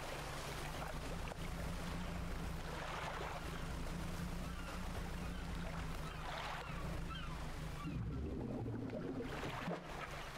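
Water splashes around a moving boat.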